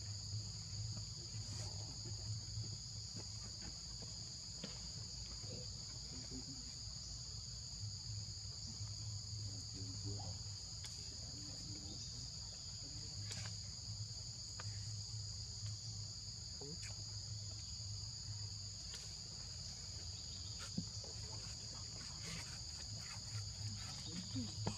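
A baby monkey suckles with soft smacking sounds.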